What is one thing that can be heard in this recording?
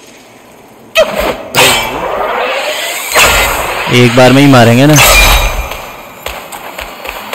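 Blades clash and whoosh in a fight.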